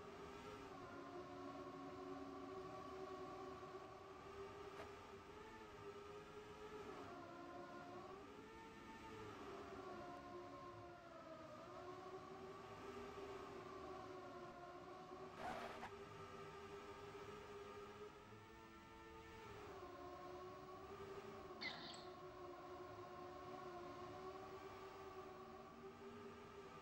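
Racing car engines whine steadily, rising and falling in pitch as the cars speed up and slow down.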